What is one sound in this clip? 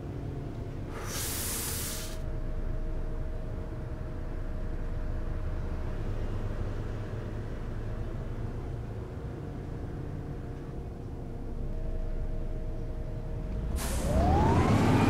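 Air brakes release with a short, sharp hiss.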